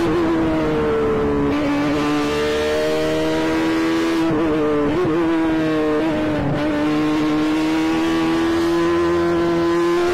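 Wind rushes past the car.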